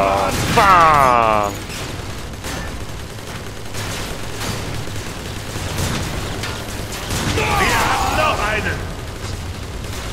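Heavy metal clangs and crashes ring out in a large echoing space.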